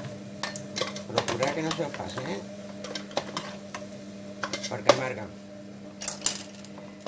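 Oil sizzles gently in a frying pan.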